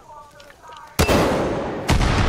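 A weapon fires with a loud blast.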